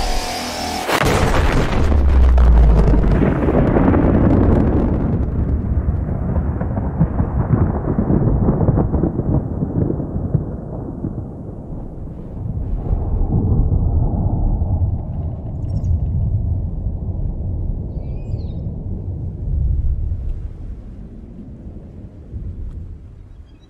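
A deep explosion rumbles and slowly fades.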